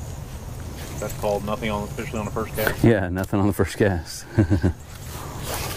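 A man speaks casually outdoors, close by.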